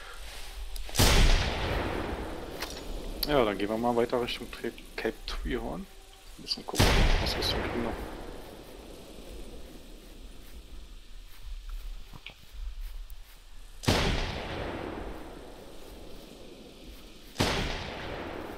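A rifle fires loud single shots that echo away.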